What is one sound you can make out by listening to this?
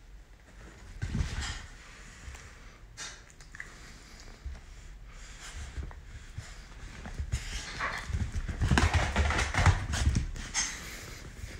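A small dog's paws thump and scramble on a soft cushion.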